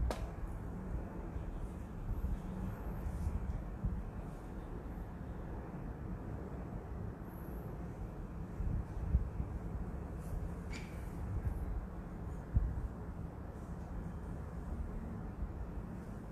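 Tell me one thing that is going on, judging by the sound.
Electric fans whir steadily.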